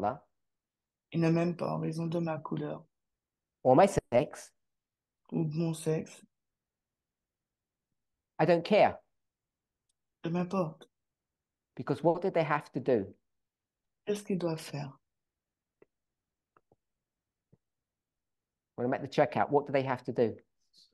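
A man speaks calmly in short bursts with pauses, heard through an online call.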